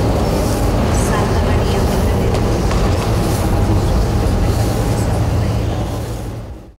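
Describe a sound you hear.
Knees shuffle softly across a hard floor.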